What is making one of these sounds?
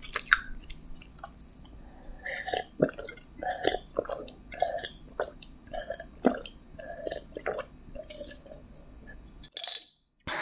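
A young woman gulps a drink close to a microphone.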